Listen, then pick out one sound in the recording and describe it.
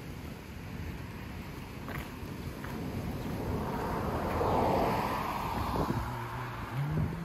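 A car passes by on the road.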